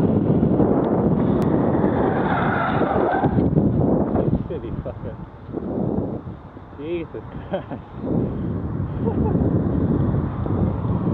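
Wind buffets loudly outdoors while cycling along a road.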